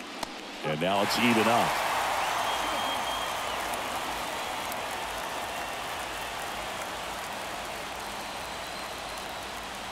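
A stadium crowd roars suddenly and then slowly quiets.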